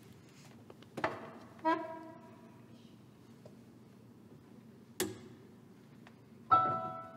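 A piano plays a few single notes in a large echoing room.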